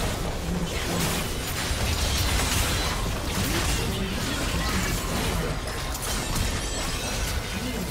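A deep explosion booms as a structure is destroyed.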